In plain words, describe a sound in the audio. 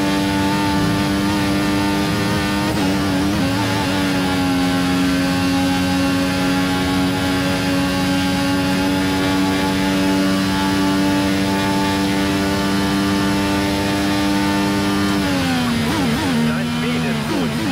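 A racing car engine screams at high revs, shifting up a gear and then dropping in pitch as it brakes.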